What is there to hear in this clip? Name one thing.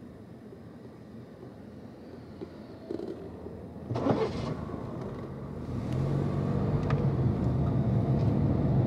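A car engine hums steadily and grows louder.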